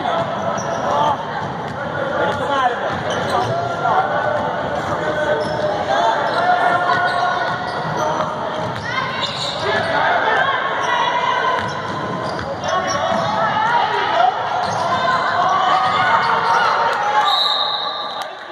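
Spectators talk and cheer in an echoing gym.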